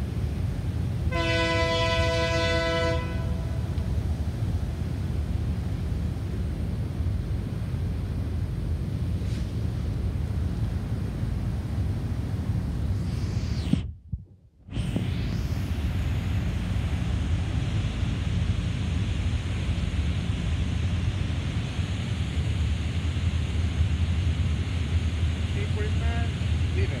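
A diesel train engine rumbles as it approaches.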